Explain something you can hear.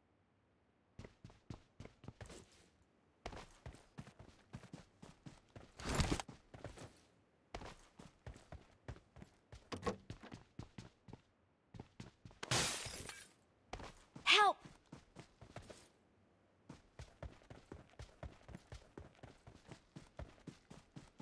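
Footsteps thud quickly on dirt and grass.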